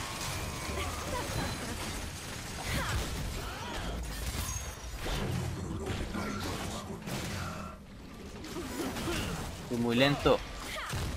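Game spells whoosh and crackle in a hectic fight.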